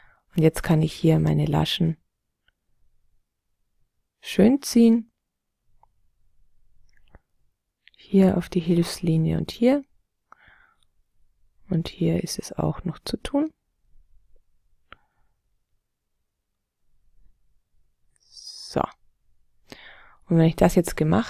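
A young man talks calmly into a microphone, in short bursts with pauses.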